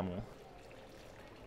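Water trickles from a tap into a basin.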